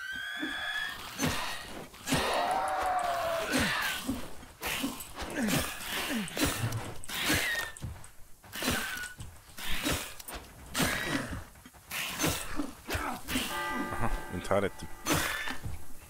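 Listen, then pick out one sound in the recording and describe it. Weapon blows land with sharp thuds during a fight.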